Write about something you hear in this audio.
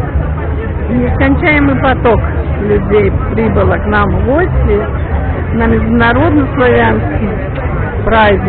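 Men and women call out and shout nearby.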